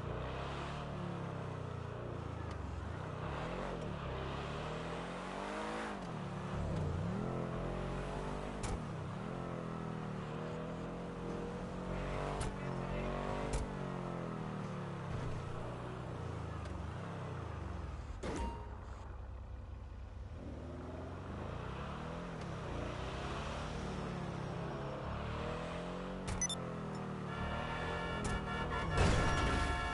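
A car engine revs up and down as it drives.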